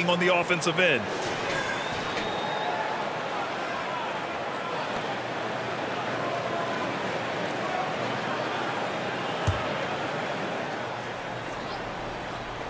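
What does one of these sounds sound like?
A large crowd murmurs steadily in an echoing arena.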